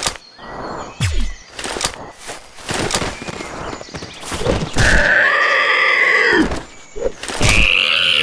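Shotgun blasts ring out, each with a sharp boom.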